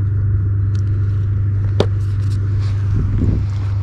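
Plastic clicks and rustles as a fishing lure is handled.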